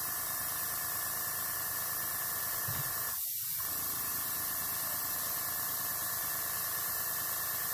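An airbrush hisses steadily as it sprays.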